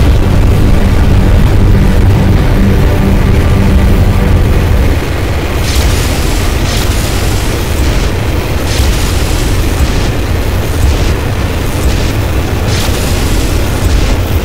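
Heavy blows thud during a fight.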